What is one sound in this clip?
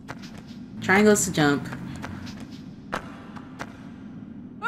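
Footsteps patter quickly on stone paving.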